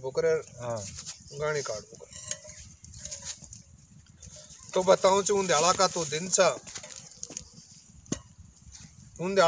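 Elderly men talk calmly and close by, outdoors.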